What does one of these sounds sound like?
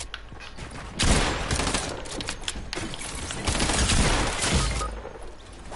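Gunshots crack in rapid bursts with sharp impacts.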